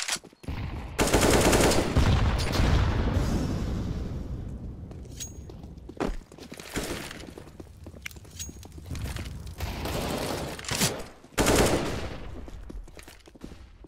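Rifle shots crack in loud bursts in a video game.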